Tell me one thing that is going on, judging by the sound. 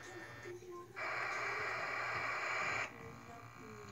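Loud static hisses from the game.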